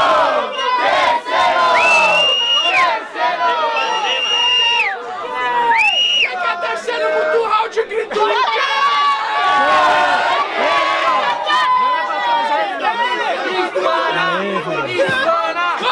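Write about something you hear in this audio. A crowd of young people cheers and shouts.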